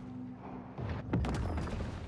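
Water splashes loudly as a large creature bursts out of it.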